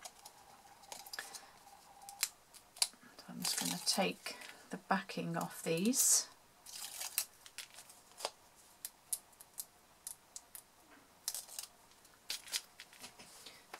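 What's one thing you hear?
A thin metal cutting die taps and clicks against paper.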